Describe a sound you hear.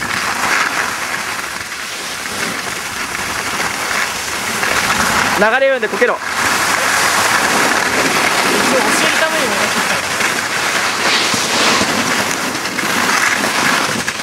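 A snowboard scrapes and hisses across hard snow.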